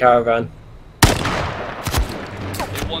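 A single rifle shot cracks loudly and echoes away.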